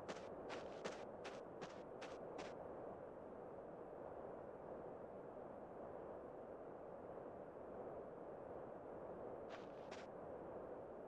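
Footsteps crunch on sand.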